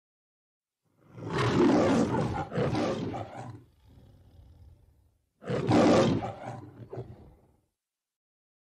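A man roars loudly twice.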